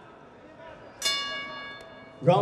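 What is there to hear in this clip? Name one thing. A boxing bell rings out loudly and rings on.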